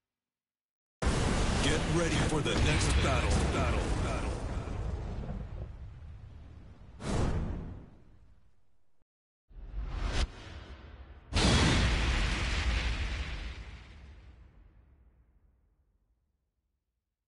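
A deep explosion booms and slowly fades.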